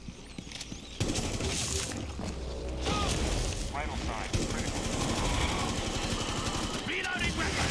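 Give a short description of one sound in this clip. Gunfire rattles rapidly.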